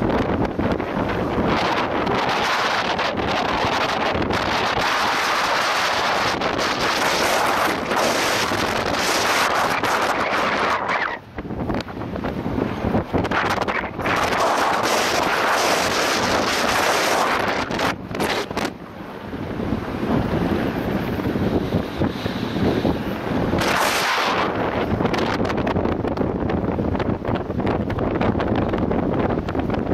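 Strong wind gusts and rumbles loudly outdoors.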